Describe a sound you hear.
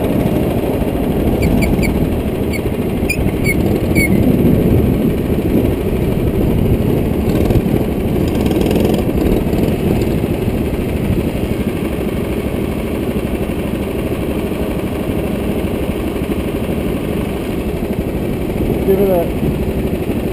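A go-kart engine drones loudly close by.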